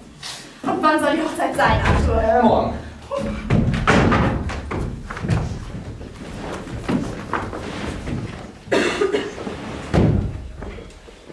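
Footsteps thump on a wooden floor.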